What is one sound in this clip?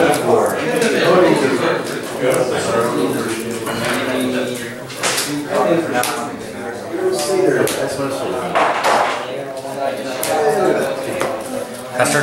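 Cards slide and tap on a soft mat.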